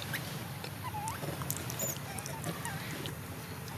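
A monkey squeals shrilly up close.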